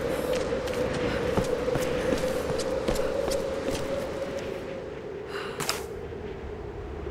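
Steady rain hisses outdoors.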